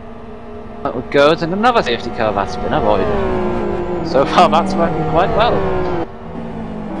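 Car tyres squeal through a corner.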